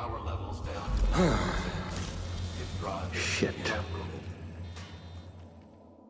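A man curses under his breath, close by.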